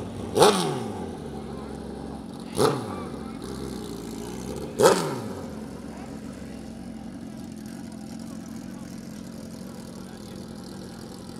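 A motorcycle engine idles with a steady rumble.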